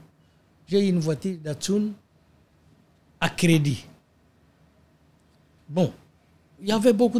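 An elderly man speaks calmly into a microphone in short phrases, with pauses.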